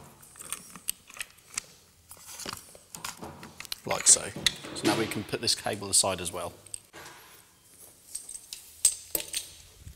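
Small metal parts click and clatter as a man handles a device.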